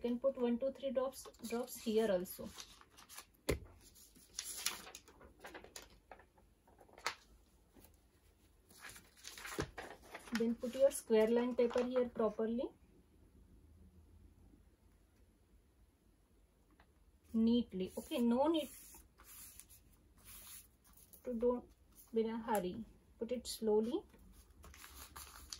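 Sheets of paper rustle and crinkle as they are handled.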